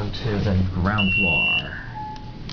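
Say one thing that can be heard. An elevator button beeps when pressed.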